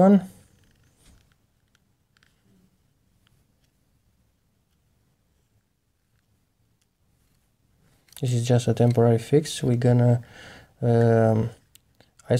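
Small plastic parts click faintly as hands handle them.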